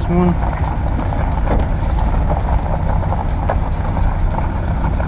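A vehicle engine rumbles steadily while driving.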